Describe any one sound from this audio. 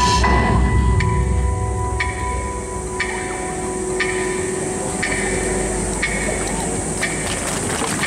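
Wooden hand clappers clack together in a slow, steady beat.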